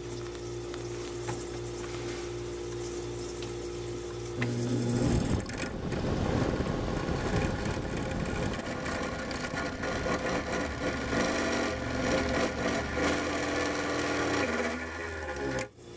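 A small fan whirs close by.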